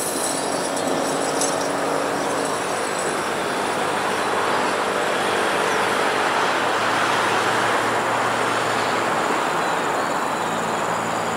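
Wheels clatter over rail joints and points.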